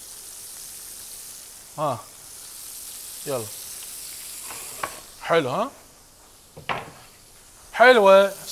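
Shrimp sizzle softly in hot oil.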